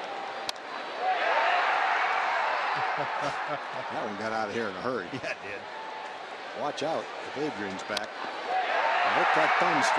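A large crowd cheers and roars in an open stadium.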